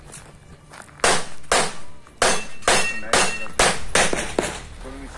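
Gunshots crack in quick succession outdoors.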